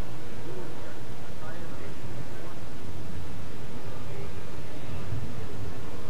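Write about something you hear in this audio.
People chatter in the distance in a large echoing hall.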